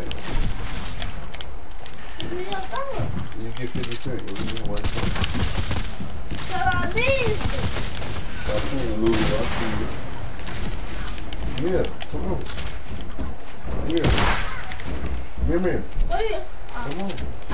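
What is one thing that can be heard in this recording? Video game building pieces clatter and thump into place.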